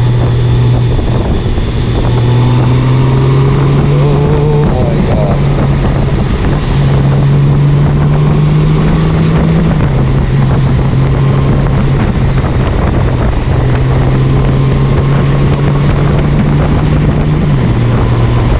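A flat-six touring motorcycle's automatic gearbox shifts, changing the engine's pitch.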